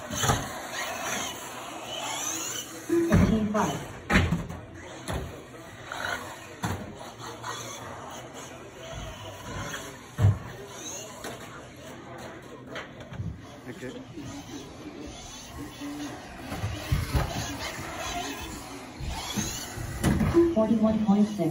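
A small electric toy car's motor whirs and whines as it speeds around.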